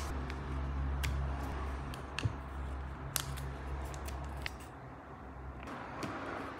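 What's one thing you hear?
Wooden sticks click and tap softly as they are handled.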